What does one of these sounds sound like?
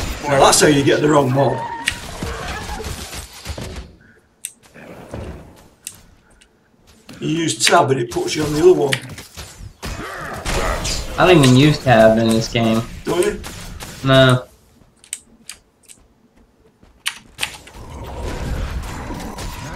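Sword clashes and spell effects ring out in a video game fight.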